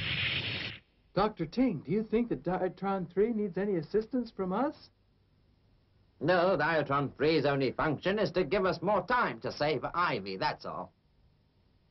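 A middle-aged man speaks sternly.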